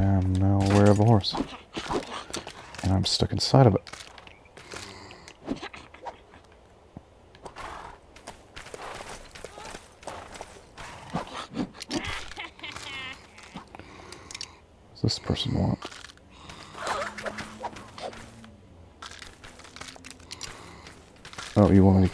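A horse's hooves thud on grass as it trots.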